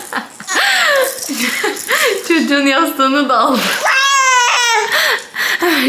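A toddler shakes a plastic rattle.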